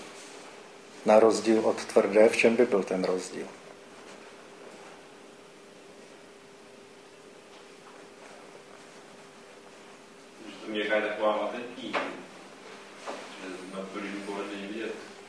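An older man speaks calmly in bursts with long pauses, his voice echoing slightly in the room.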